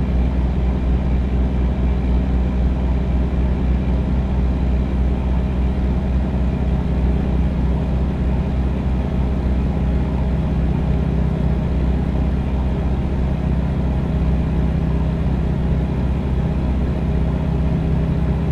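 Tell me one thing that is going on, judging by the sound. A truck engine drones steadily with a low hum.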